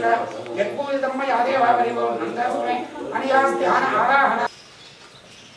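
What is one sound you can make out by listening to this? A crowd of men and women murmur and talk nearby.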